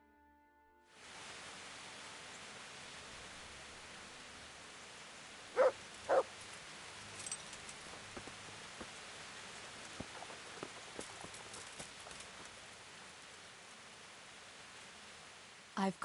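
A horse's hooves thud on a dirt road.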